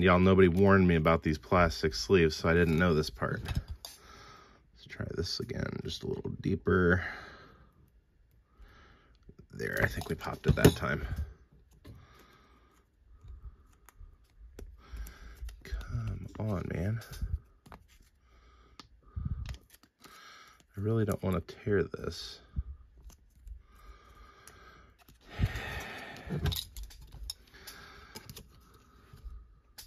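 Plastic card holders click and rattle as they are handled.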